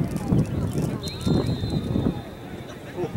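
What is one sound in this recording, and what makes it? A referee's whistle blows shortly.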